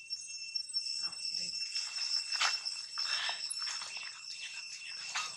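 A baby monkey squeaks and squeals close by.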